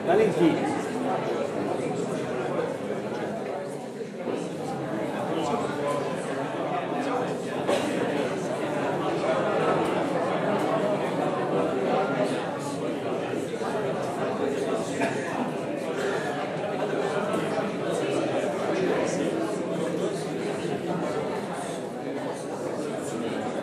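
A crowd of men and women talks over one another loudly in a large room.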